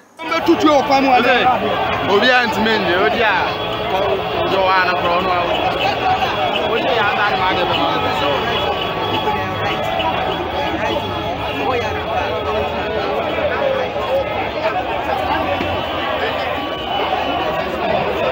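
A crowd of men and women shouts and clamours outdoors.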